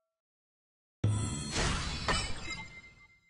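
A bright celebratory jingle plays loudly.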